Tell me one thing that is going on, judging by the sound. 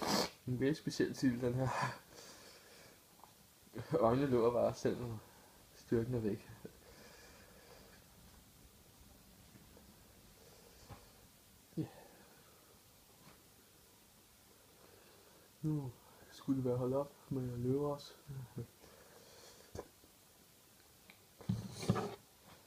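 A young man talks casually, close to the microphone, in short bursts with pauses.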